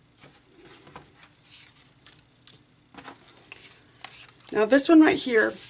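Paper strips rustle and slide as hands place them on a sheet.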